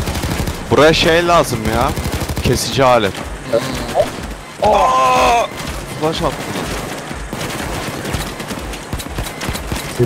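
Game gunshots fire in rapid bursts.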